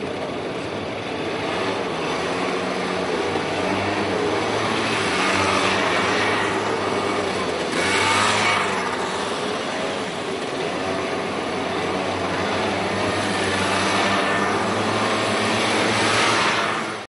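Motor scooter engines hum as they ride past one after another.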